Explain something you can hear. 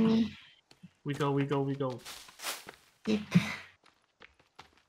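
A young woman speaks animatedly into a microphone, close by.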